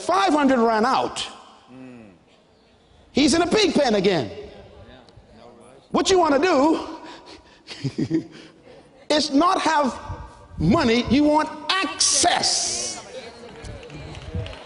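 A man preaches with animation through a microphone, his voice rising and falling in a large echoing hall.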